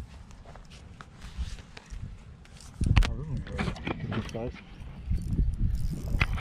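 A mesh landing net rustles as it is handled.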